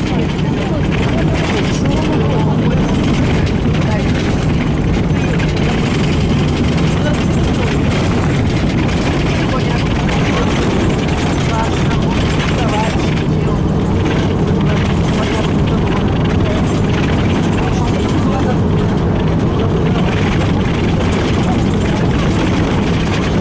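Tyres rumble over a snowy road.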